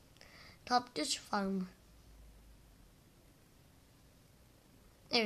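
A young boy speaks with animation close to a microphone.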